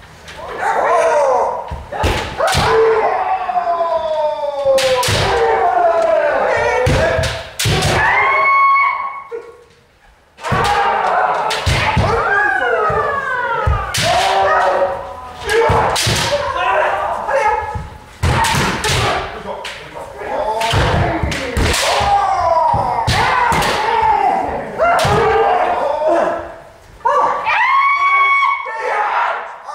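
Bare feet stamp on a wooden floor.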